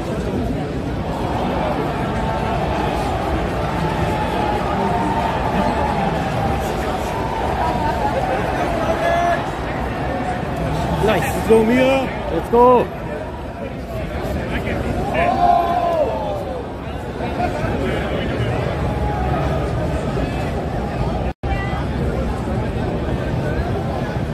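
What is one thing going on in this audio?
A crowd murmurs and chatters steadily in a large, noisy hall.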